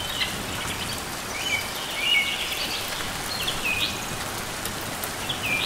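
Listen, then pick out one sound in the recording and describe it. A small bird chirps in short, high bursts.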